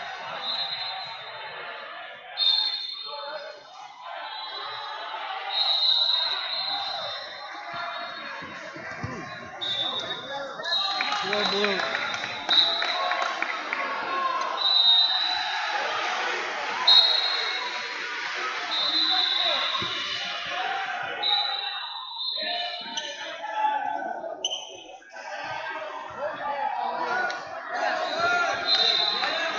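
Spectators talk and call out in a large echoing hall.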